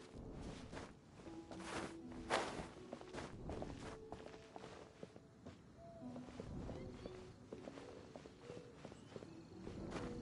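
Quick footsteps patter on roof tiles.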